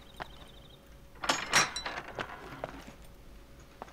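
A heavy metal door slides open with a rumble.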